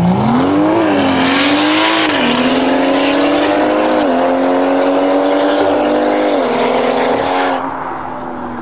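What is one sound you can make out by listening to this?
Car engines roar loudly as two cars accelerate hard, rising in pitch with each gear change.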